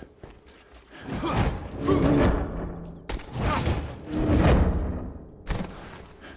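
Claws slash through the air with loud, sharp whooshes.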